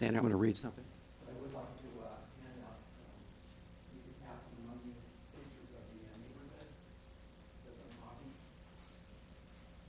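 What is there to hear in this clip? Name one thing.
Several adults talk quietly further off.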